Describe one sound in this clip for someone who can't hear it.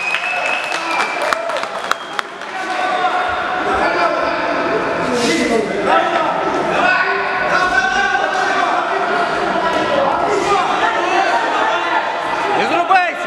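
Spectators shout and cheer loudly in an echoing hall.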